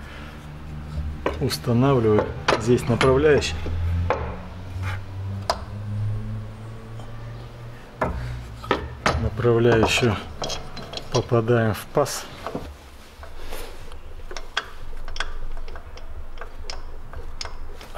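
Metal tools click and clink against engine parts.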